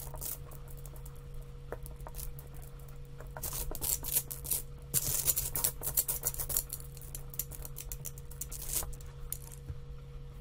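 Tiles clack and rattle as they are shuffled on a table.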